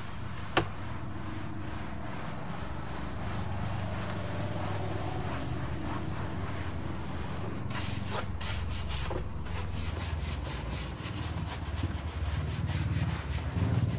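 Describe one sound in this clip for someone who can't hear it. A cloth rubs and scrubs against a fabric ceiling close by.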